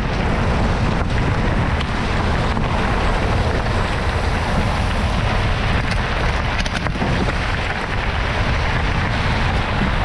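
Bicycle parts rattle and click over bumps.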